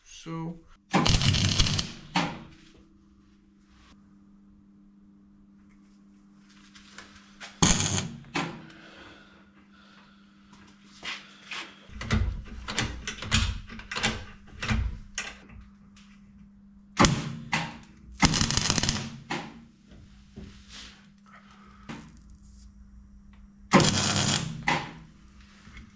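A welder crackles and buzzes in short bursts.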